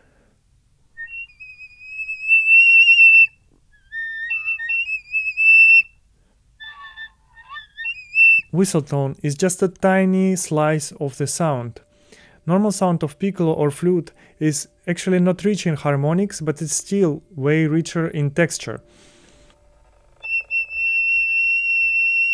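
A small flute plays high, clear notes.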